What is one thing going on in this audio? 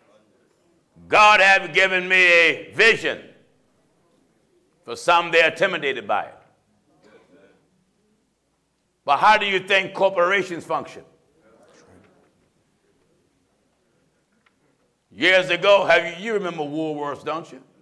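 A middle-aged man preaches forcefully through a microphone, with long pauses between phrases.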